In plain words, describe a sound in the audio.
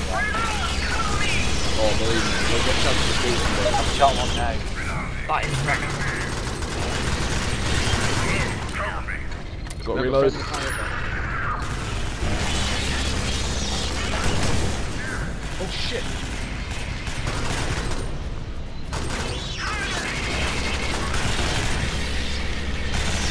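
Automatic guns fire in rapid bursts.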